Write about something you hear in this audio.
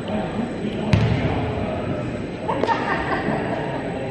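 A basketball bounces on the hardwood floor.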